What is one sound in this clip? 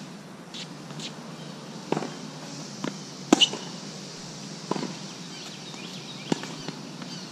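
Sneakers scuff and squeak on a hard court.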